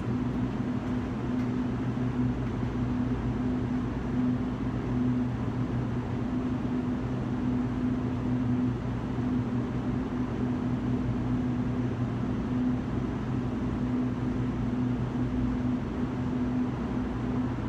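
A low electrical hum drones steadily from the lamps.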